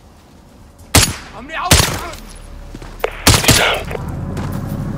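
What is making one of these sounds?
A rifle fires several sharp, loud shots.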